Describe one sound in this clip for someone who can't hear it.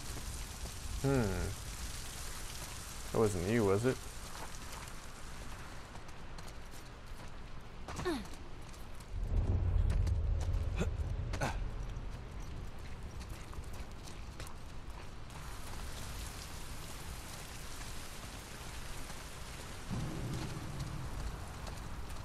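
A man speaks now and then into a microphone, close and calm.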